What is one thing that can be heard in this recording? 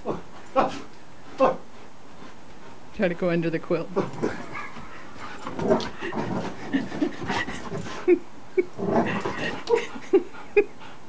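A dog scrabbles and thumps on a bed.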